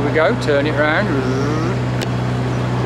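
An elderly man speaks close to the microphone.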